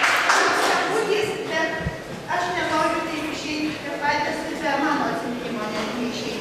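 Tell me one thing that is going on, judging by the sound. A woman speaks warmly into a microphone in an echoing hall.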